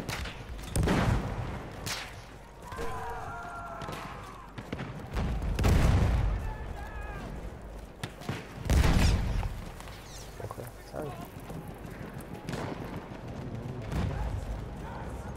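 Explosions boom across an open battlefield.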